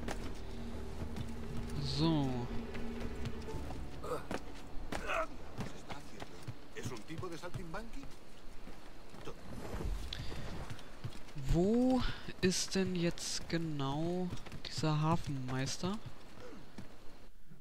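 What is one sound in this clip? Footsteps thud quickly across wooden planks.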